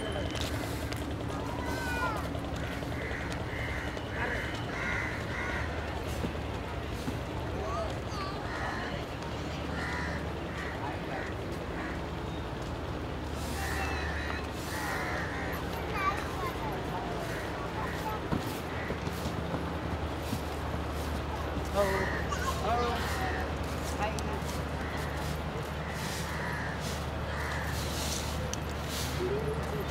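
Voices of a crowd murmur and chatter at a distance outdoors.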